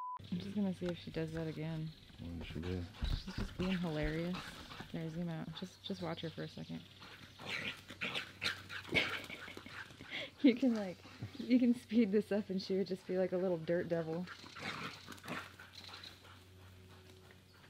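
A dog runs through grass.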